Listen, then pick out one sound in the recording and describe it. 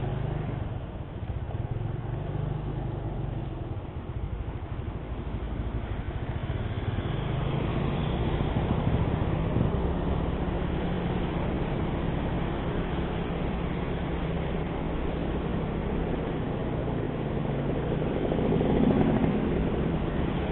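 A motor scooter engine hums steadily up close.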